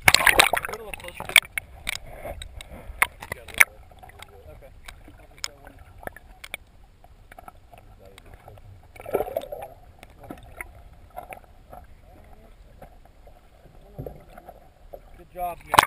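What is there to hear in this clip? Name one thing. Muffled underwater clicks and bubbling crackle close by.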